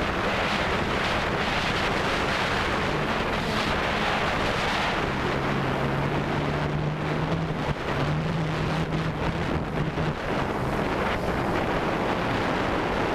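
A drone's propellers whir steadily and shift in pitch.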